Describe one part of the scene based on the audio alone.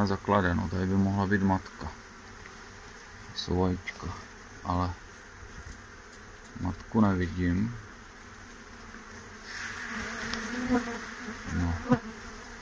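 Bees buzz in a steady hum.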